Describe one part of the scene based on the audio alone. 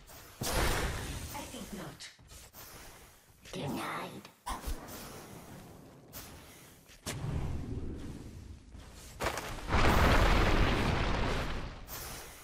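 Fantasy game battle effects clash and burst loudly.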